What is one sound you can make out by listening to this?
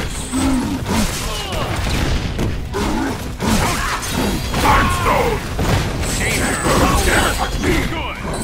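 Punches and blasts crack and thump in quick bursts.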